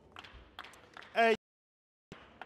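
A young woman shouts loudly.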